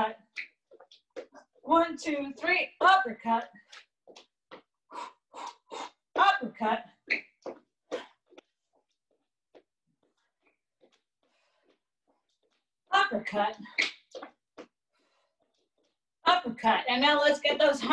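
A young woman speaks from a few steps away.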